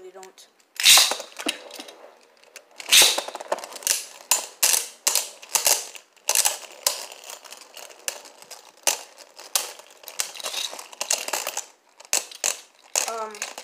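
Spinning tops whir and clash against each other, clicking and knocking repeatedly.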